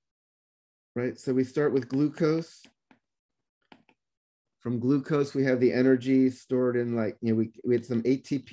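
A man speaks calmly through a microphone, as if on an online call.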